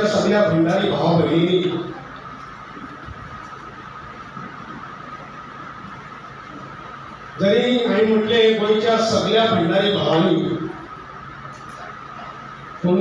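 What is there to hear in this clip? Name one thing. A man speaks into a microphone over loudspeakers, in an echoing hall, pausing between phrases.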